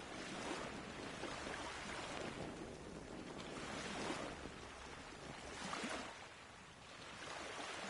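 An oar splashes softly in water.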